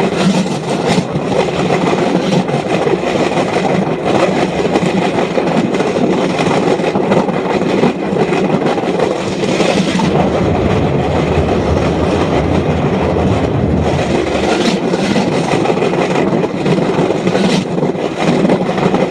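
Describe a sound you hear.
Wind rushes past.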